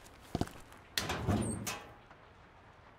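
A metal locker door opens with a rattle.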